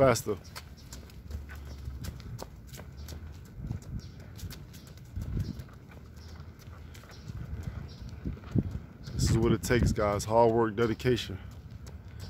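Footsteps patter quickly on a paved path outdoors.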